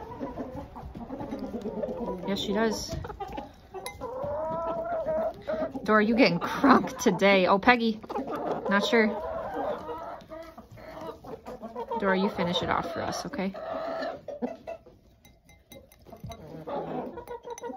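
A hen pecks and taps at a glass.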